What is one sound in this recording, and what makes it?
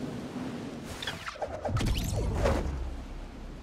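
A glider snaps open with a loud whoosh.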